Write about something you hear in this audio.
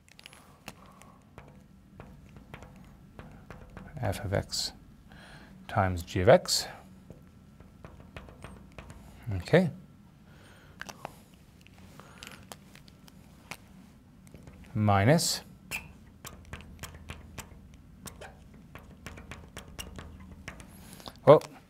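A marker squeaks and taps on a glass board.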